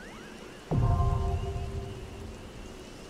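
A bright chime rings out with a deep boom.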